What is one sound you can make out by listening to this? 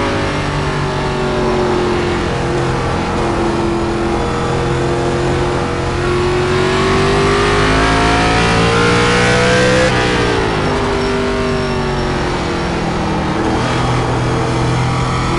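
A race car engine roars steadily, rising in pitch as it speeds up, then dropping sharply and climbing again.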